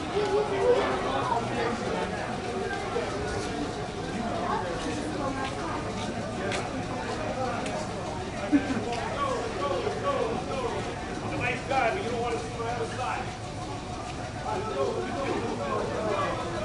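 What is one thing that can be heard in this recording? A crowd of men and women chatter nearby, echoing in a large hard hall.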